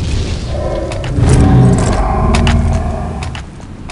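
A video game's gun is readied with a metallic clatter.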